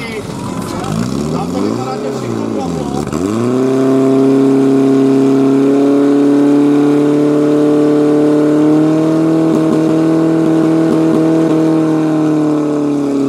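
A fire pump engine revs up and then roars steadily.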